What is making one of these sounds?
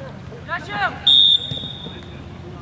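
A referee's whistle blows a short, sharp blast.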